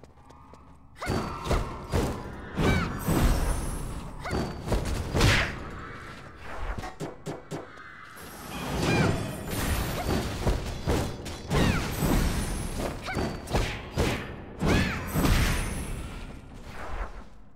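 Swords clash and whoosh in a fast fight.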